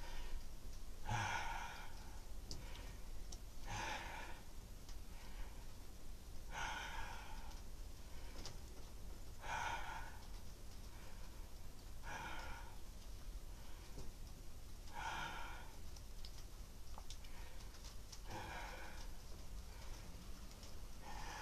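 A man breathes out hard in regular bursts.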